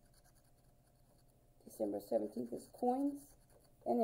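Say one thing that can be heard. A coin scratches across a paper ticket.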